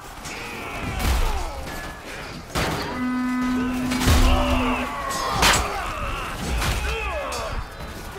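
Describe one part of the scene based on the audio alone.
Men shout and yell in a chaotic fight.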